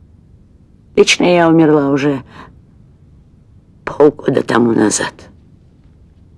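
A middle-aged woman speaks with feeling, close by.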